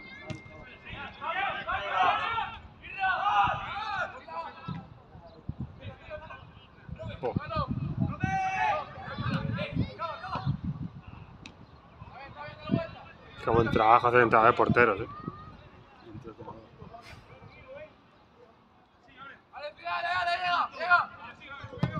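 Young players shout and call out across an open outdoor pitch.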